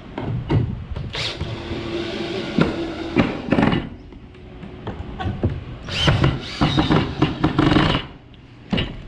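A cordless drill whirs, driving screws into wood in short bursts.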